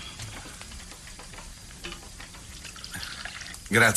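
Coffee pours into a cup.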